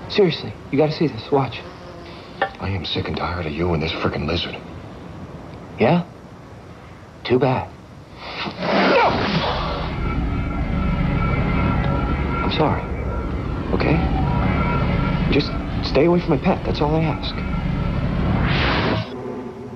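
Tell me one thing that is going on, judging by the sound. A young man answers with animation, close by.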